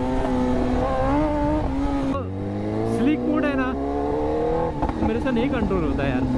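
A motorcycle engine hums close by, its pitch rising and dropping as it shifts gears.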